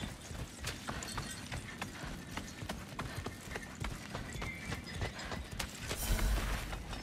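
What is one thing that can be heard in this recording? Footsteps run quickly over dry ground.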